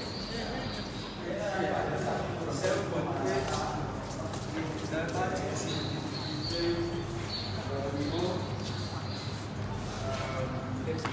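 Several adults chat indistinctly nearby in an echoing room.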